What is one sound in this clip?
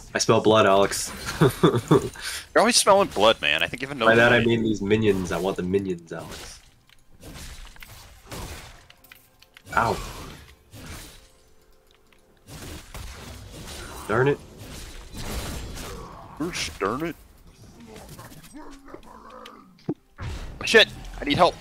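Fighting sound effects of a video game clash, zap and whoosh.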